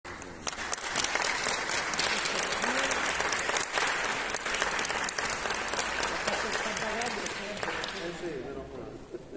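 An audience applauds loudly in a large echoing hall, then the applause fades away.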